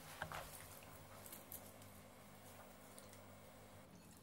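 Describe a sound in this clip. Chopsticks tap softly against a bowl.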